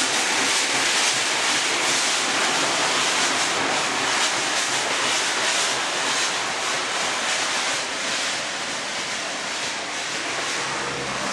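Railway carriages rumble and clatter along the track.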